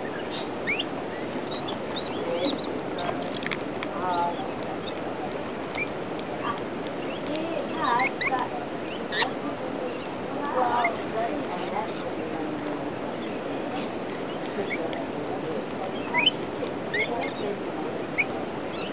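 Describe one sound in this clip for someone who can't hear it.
Parrots chirp and squawk close by.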